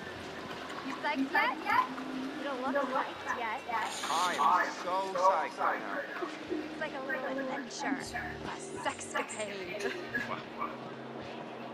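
A young woman and a young man talk with excitement, heard close.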